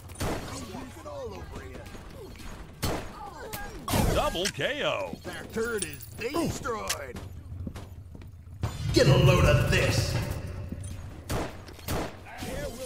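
A revolver fires in a video game.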